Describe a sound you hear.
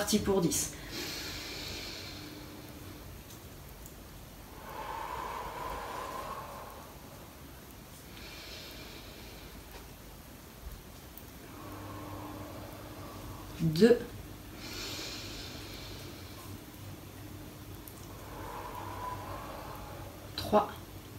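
A woman breathes slowly and deeply, close by.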